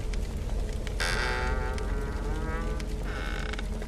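A wooden door creaks open slowly.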